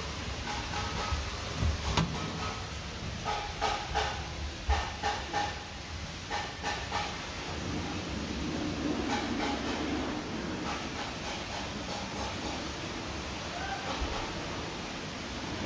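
Fabric rustles and crinkles as a hand presses and tucks it.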